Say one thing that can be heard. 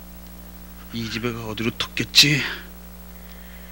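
A man speaks urgently, close by.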